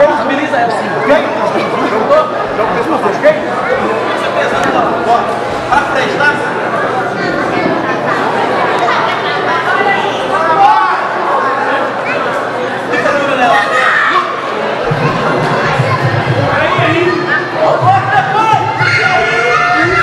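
A large crowd chatters and cheers loudly around the ring.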